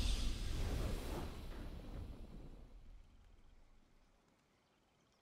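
Triumphant game music swells loudly and then fades away.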